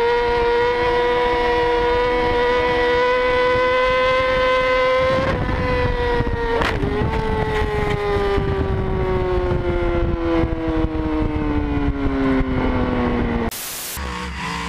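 A motorcycle engine whines at high revs, then drops in pitch as it speeds past.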